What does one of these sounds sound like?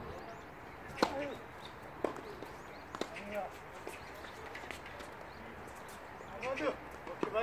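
Tennis rackets strike a ball back and forth in an outdoor doubles rally.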